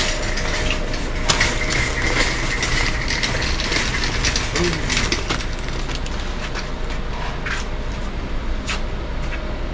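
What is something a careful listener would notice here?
Plastic bags of rice rustle as they are handled.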